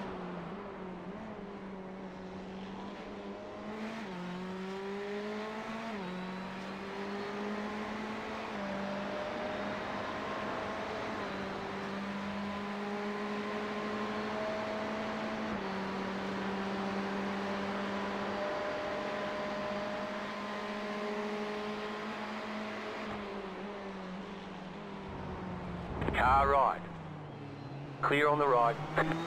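A race car engine hums steadily, rising and falling in pitch as it shifts gears.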